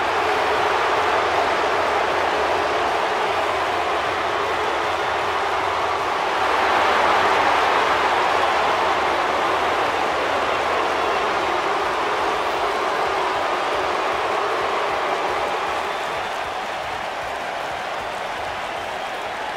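A large crowd cheers loudly in a big echoing arena.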